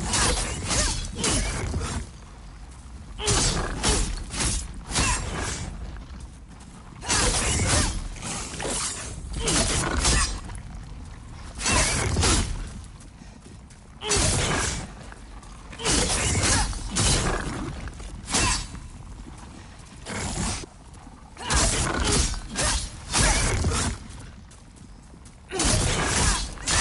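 Heavy blows and crashes strike again and again in a fight.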